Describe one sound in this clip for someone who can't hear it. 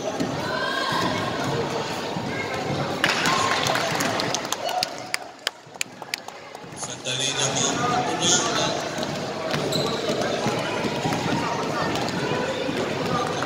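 Young players call out and chatter around the court.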